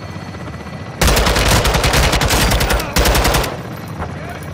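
An automatic rifle fires in rapid, loud bursts.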